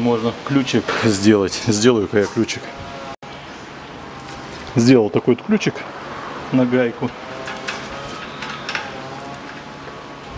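Metal tools clink against a steel strut and spring.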